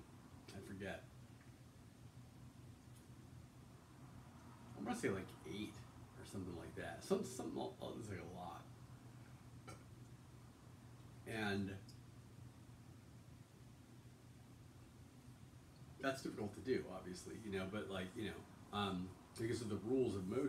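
A man speaks calmly and close by, pausing often.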